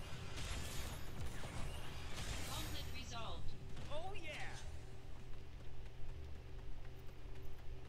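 Blades slash and strike with sharp metallic swishes.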